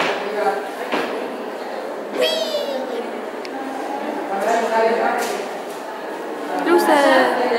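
Voices murmur nearby.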